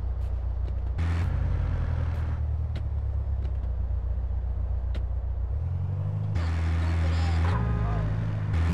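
A truck engine revs up.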